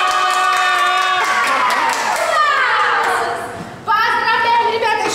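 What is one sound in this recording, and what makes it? A young woman speaks cheerfully to children.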